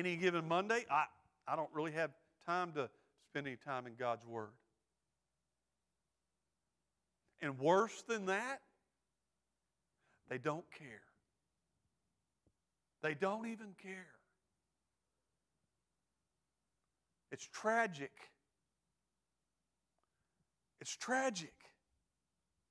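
A middle-aged man speaks calmly and with pauses through a microphone.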